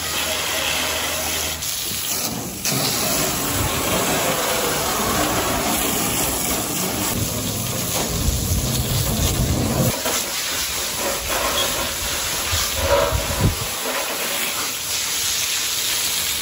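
A jet of water from a hose sprays and splashes hard onto metal and wet pavement.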